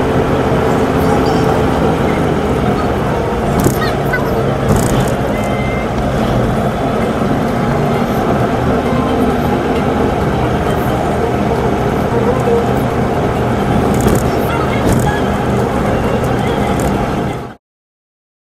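A car engine hums steadily from inside while driving.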